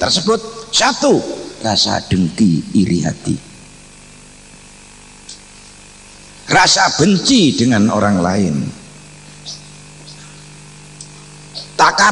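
A middle-aged man speaks forcefully into a microphone, with pauses between phrases.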